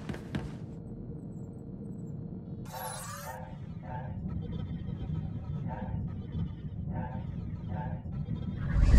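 A low steady hum of a starship drones throughout.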